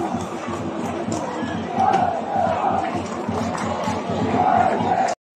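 A large crowd chatters and sings in a stadium stand.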